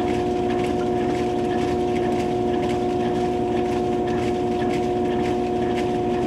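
A washing machine drum spins with a steady motor hum.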